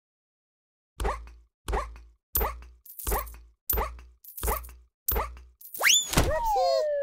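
A game character bounces with quick springy boings.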